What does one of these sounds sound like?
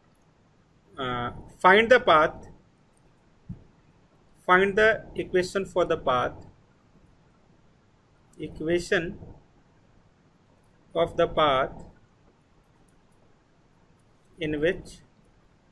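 A man speaks calmly and slowly through a microphone, in short phrases with pauses.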